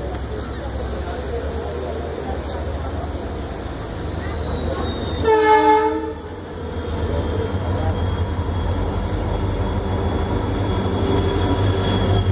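A train rumbles steadily along the tracks, close by.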